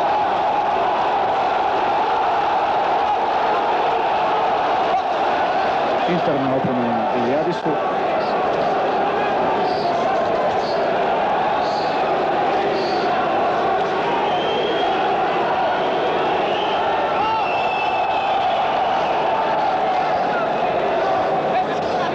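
A large crowd murmurs and cheers steadily in an echoing hall.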